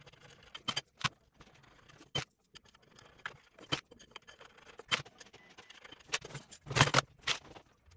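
A small box of metal parts rattles as it is moved.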